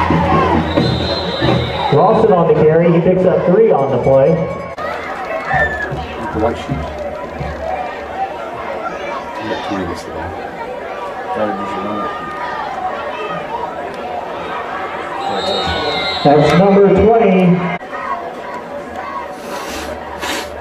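A crowd cheers and shouts loudly in an open-air stadium.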